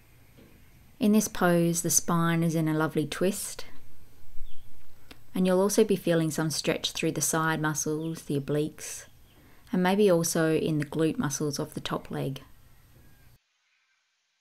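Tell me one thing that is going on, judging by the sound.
A woman speaks calmly and slowly, close to a microphone.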